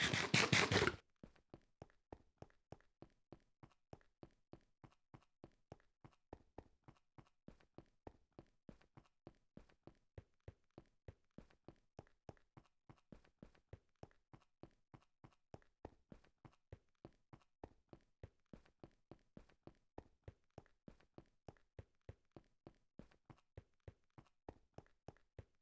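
Quick footsteps crunch steadily on rough ground.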